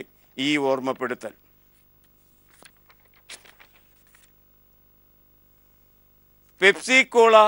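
An elderly man reads out calmly into a close microphone.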